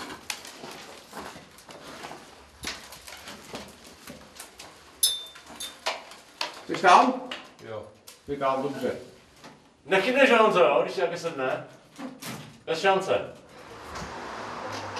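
Boots knock and clatter on a metal ladder.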